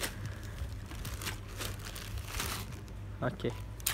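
Plastic wrap crinkles and rustles close by.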